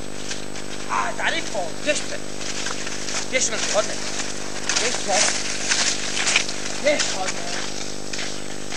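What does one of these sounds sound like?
Cross-country skis swish and scrape over snow as a skier passes close by.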